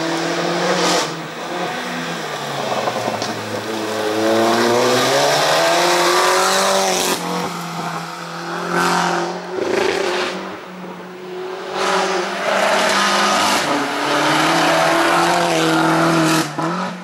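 A rally hatchback's engine pitch drops sharply between gear shifts.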